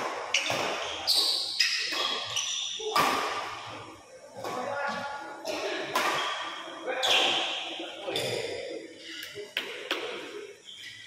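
Shuttlecocks are struck sharply with rackets, echoing in a large hall.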